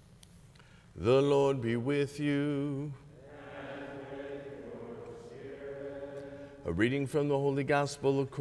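A middle-aged man speaks calmly and expressively through a microphone in an echoing hall.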